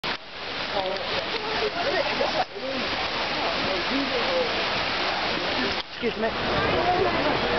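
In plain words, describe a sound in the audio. Fountains splash and rush steadily outdoors.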